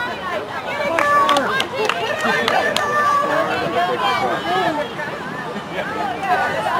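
Young women shout and cheer nearby outdoors.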